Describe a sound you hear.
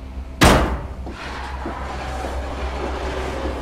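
A wooden crate scrapes along the ground as it is pushed.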